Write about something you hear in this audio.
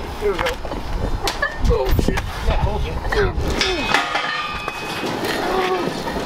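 A heavy iron chain clanks and scrapes on pavement.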